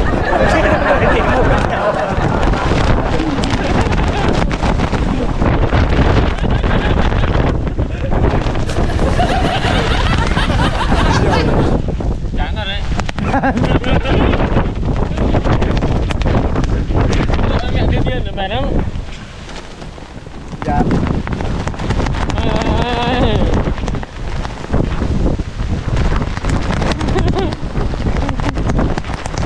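Strong wind roars and buffets the microphone outdoors.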